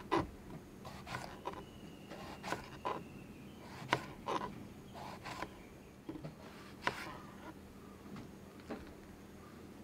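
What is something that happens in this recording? A knife chops through soft vegetables on a cutting board.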